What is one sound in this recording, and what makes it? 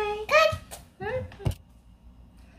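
A young child squeals and babbles excitedly close by.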